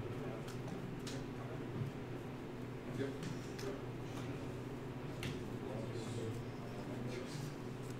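Playing cards shuffle and riffle softly in a player's hands.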